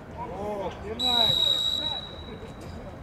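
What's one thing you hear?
A referee's whistle blows one sharp long blast.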